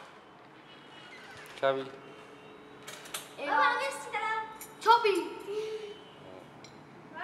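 A young boy talks loudly and with animation close by.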